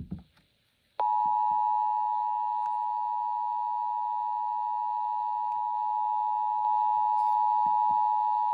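A radio gives off a loud, steady, high alert tone.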